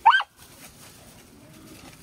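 A dog runs across dry straw.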